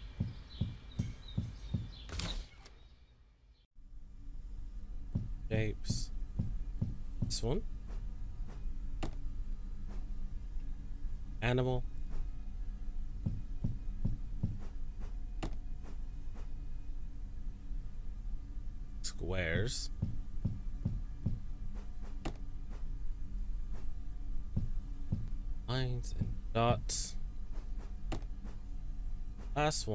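Footsteps thud steadily across a hard floor.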